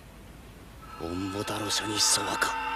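A young man chants in a low voice.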